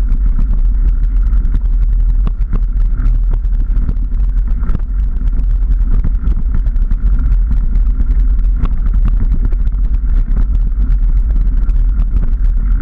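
Bicycle tyres roll and rattle over a bumpy dirt path.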